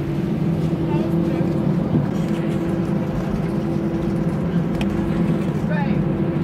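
Jet engines roar steadily inside an airplane cabin.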